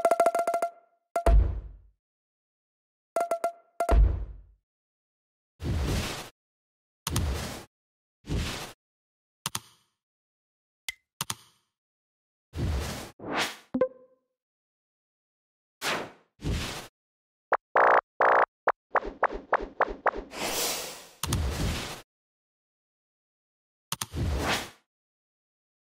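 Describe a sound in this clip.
Short electronic clicks and whooshes sound as game menus change.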